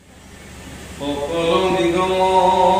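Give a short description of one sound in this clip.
A young man chants in a drawn-out voice through a microphone and loudspeaker.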